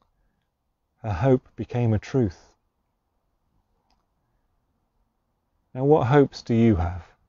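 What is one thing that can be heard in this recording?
A middle-aged man speaks calmly and warmly close to a microphone, pausing between phrases.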